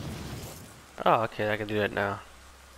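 A young man speaks with animation nearby.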